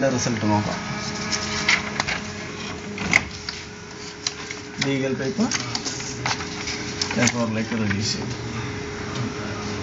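Paper rustles as a hand handles printed sheets.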